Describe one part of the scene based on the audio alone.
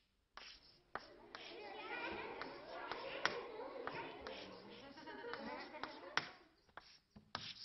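A group of children murmur and chatter in a room.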